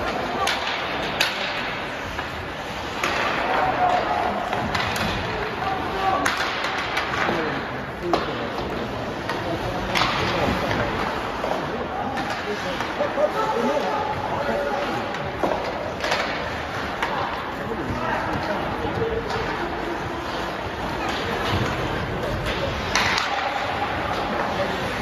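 Skates scrape and hiss across the ice, echoing in a large rink.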